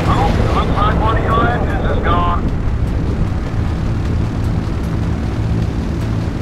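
An aircraft engine drones steadily with a low rumble.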